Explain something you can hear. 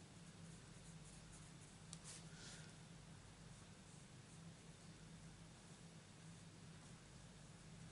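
A marker scratches softly on card stock.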